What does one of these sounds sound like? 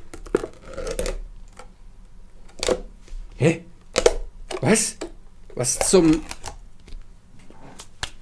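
A plastic scoop scrapes and taps inside a tub of powder.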